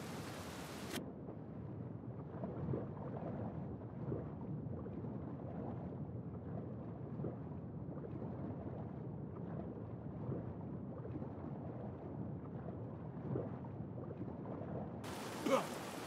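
Water rumbles, muffled as if heard from underwater.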